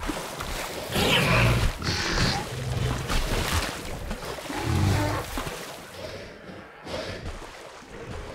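Water splashes as a heavy animal wades through shallows.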